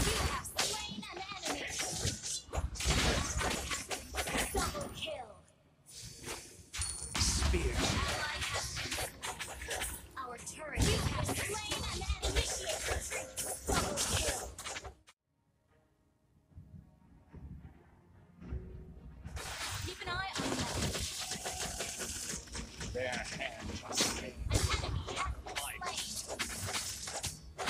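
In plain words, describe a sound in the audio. Game spells and hits crash and clash in a busy fight.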